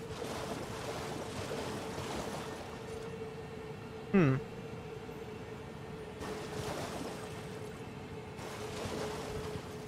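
A horse splashes through shallow water at a gallop.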